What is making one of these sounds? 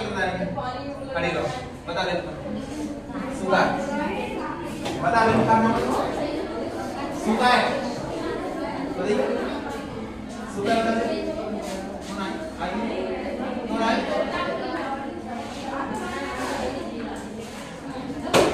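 A young man speaks calmly to a group in a room.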